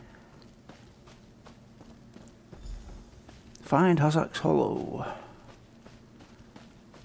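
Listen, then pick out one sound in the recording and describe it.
Footsteps run over grass and dirt.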